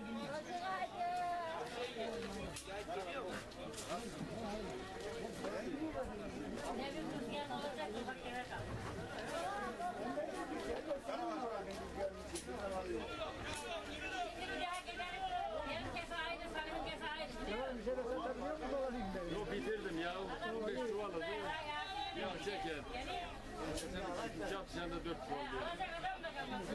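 A crowd of men and women chatter all around outdoors.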